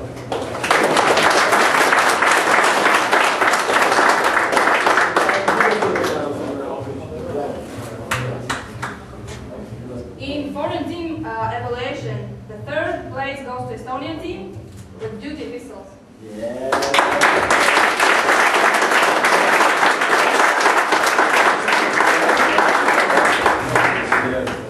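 A crowd applauds loudly in a large echoing hall.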